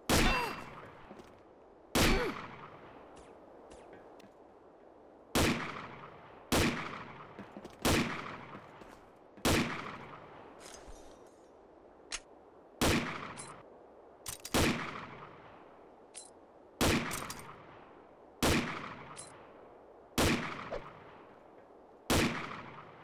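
A rifle fires single loud shots, each echoing away.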